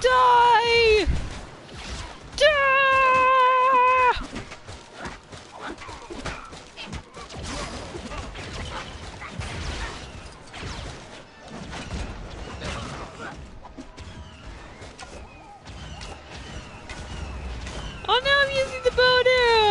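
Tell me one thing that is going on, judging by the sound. Laser blasts fire in quick bursts.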